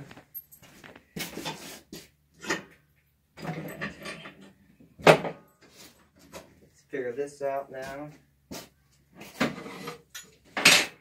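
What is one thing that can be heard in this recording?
Objects clatter and knock on a table.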